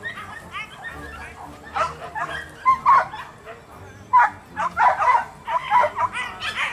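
Several young men talk and call out to each other outdoors.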